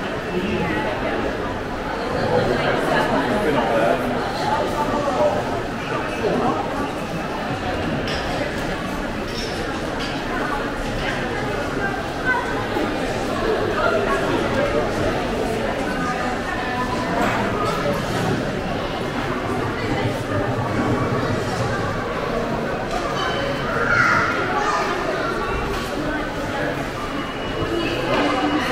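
Footsteps shuffle on a hard floor nearby.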